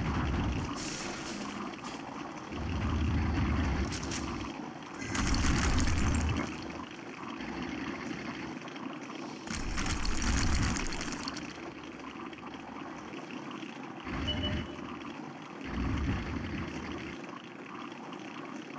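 A tank's tracks clatter over the ground.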